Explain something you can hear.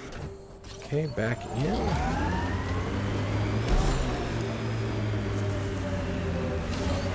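A vehicle's engine hums and revs.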